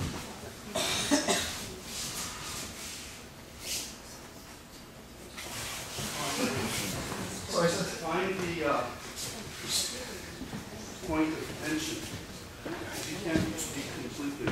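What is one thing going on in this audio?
A body thumps onto a mat.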